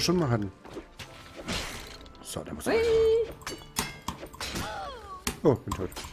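Sword swipes and hits clash in a video game.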